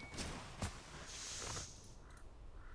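A roaring whoosh of fire flares up and dies away.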